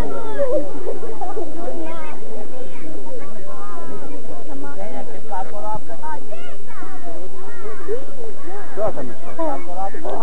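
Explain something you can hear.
Men chatter and call out close by, outdoors.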